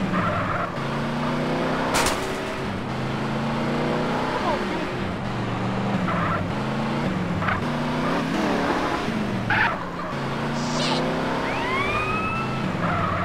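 A car engine revs and drones steadily.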